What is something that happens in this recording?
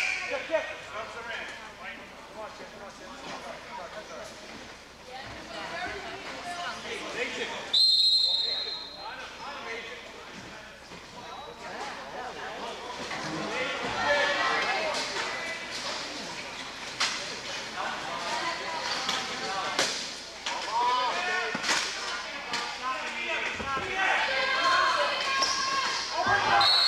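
Wheelchairs bump and clatter together on a hard court.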